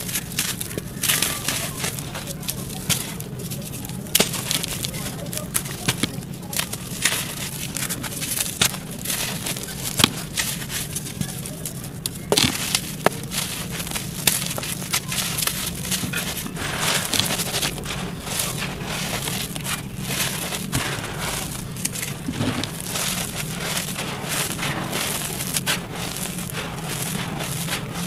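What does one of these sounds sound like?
Close, crisp crumbling and crunching of dry clay breaking apart in hands.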